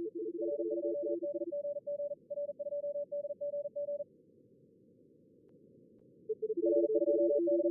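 Digital radio data tones warble in quick, stepping bursts of short beeps.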